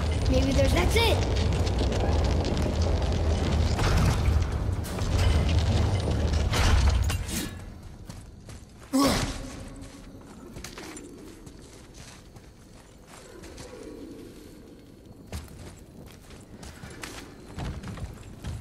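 Heavy weapon blows thud and clang against creatures.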